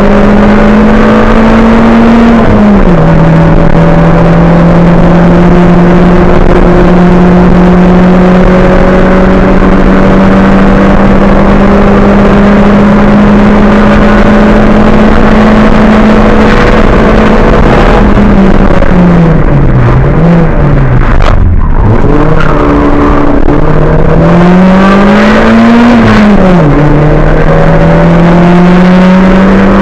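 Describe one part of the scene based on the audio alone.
A rally car engine roars loudly from inside the cabin, revving up and down through gear changes.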